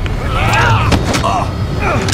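A body slams heavily onto a wooden table.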